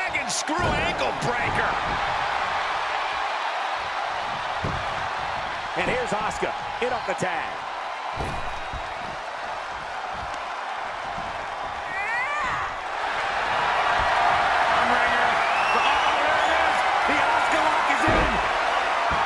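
Bodies thud heavily onto a wrestling ring mat.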